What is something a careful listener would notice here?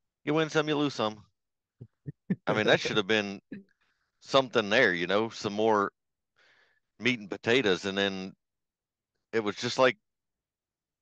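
A middle-aged man talks with animation over an online call.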